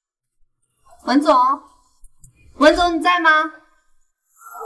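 A young woman calls out questioningly.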